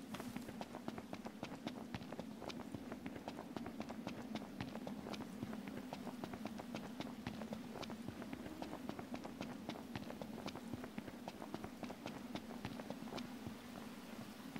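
Quick footsteps run on a dirt path.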